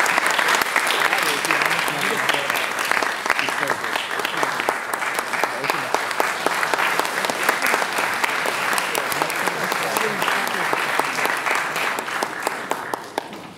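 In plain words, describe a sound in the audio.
A large choir of young women sings in an echoing hall.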